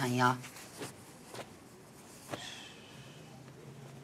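Fabric rustles as hands sort through cloth.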